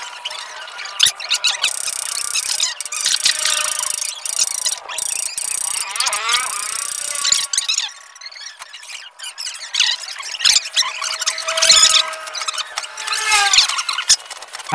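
A metal bar knocks and scrapes against wood.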